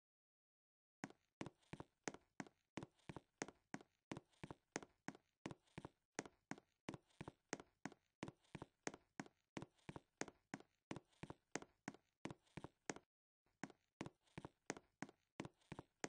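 Quick footsteps patter in a steady rhythm.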